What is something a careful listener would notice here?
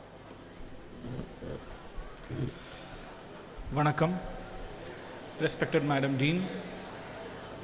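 A man speaks through a microphone over loudspeakers in a large echoing hall.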